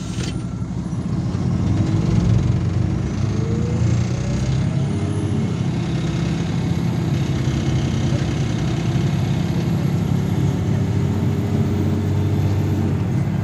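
A bus engine revs up and rumbles louder as the bus pulls away.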